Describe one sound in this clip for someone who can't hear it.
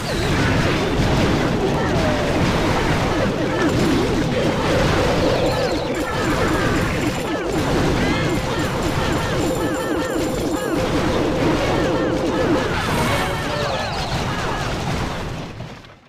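Explosions and blasts boom rapidly in a video game battle.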